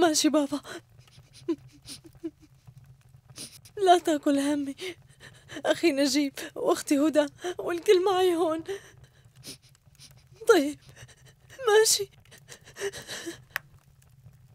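A young woman sobs and speaks tearfully into a phone, close by.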